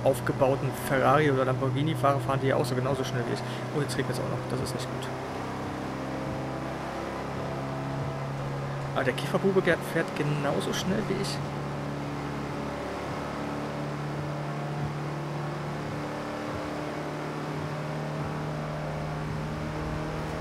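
A van engine hums steadily and slowly speeds up as it drives along a road.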